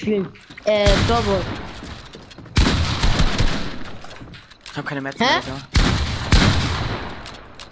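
Loud gunshots boom, each followed by a long rumbling tail.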